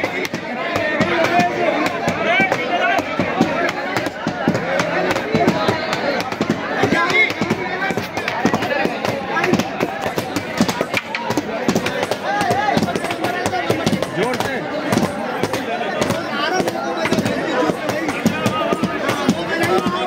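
A lively crowd chatters and shouts close by.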